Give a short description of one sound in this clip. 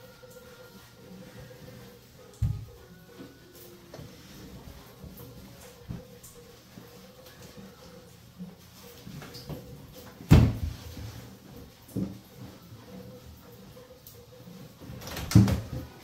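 A cloth wipes across a tiled floor.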